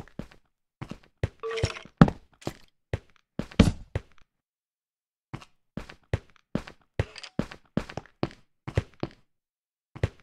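Footsteps tread on stone at a steady walking pace.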